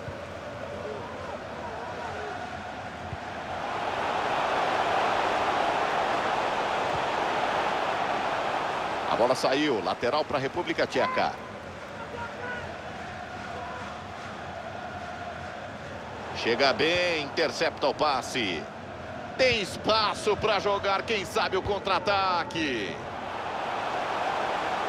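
A stadium crowd roars steadily, swelling louder for a few seconds.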